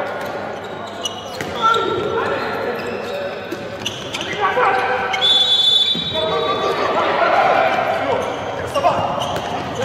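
A ball bounces and thuds on the floor.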